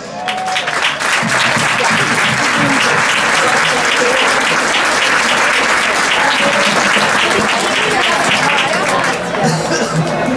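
A drum band beats a fast, steady rhythm.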